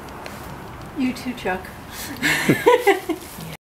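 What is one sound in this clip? A woman talks warmly and laughs close by.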